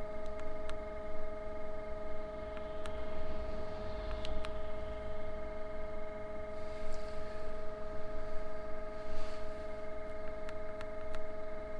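Buttons click under a finger.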